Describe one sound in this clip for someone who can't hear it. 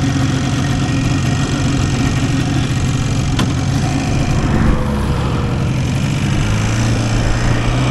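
A motorcycle engine idles with a steady, rumbling putter close by.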